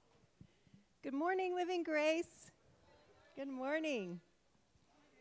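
A woman sings through a microphone with a loud, echoing voice.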